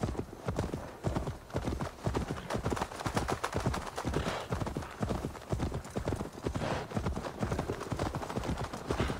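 Wind blows across open ground.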